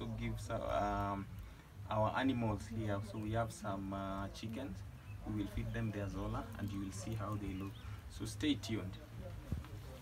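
A young man speaks calmly and clearly, close by, outdoors.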